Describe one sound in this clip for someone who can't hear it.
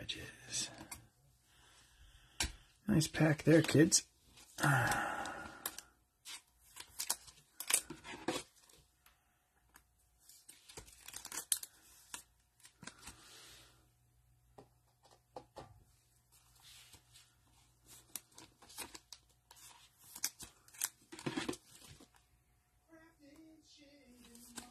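Plastic card sleeves and cards rustle and slide.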